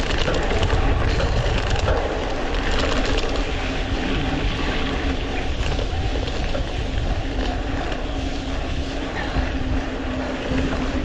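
Wind rumbles and buffets loudly.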